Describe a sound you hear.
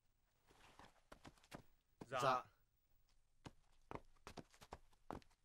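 Armour clinks and rattles as men move.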